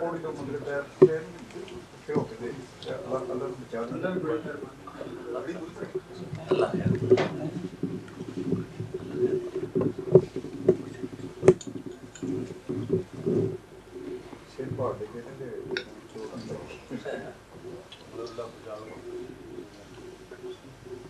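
Plates and cutlery clink as men eat.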